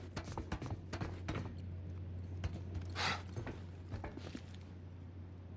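A man climbs down a metal ladder with clanking steps.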